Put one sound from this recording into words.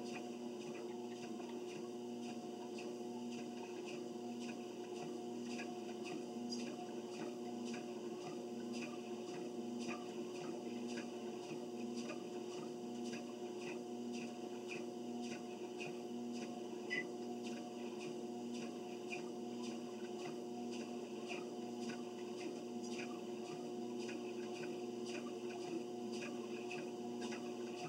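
Footsteps thud rhythmically on a treadmill belt.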